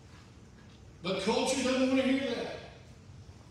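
A man speaks forcefully through a microphone in a large hall.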